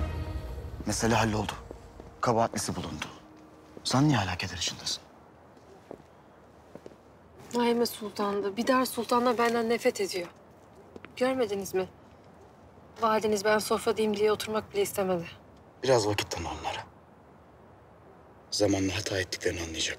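A young man speaks in a low, tense voice.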